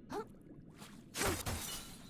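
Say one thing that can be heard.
Bubbles burst and gurgle underwater.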